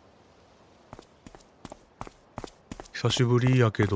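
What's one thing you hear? Quick footsteps tap on pavement.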